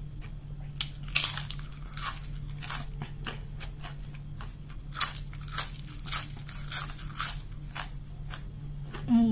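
Crisp chips crunch loudly close to a microphone.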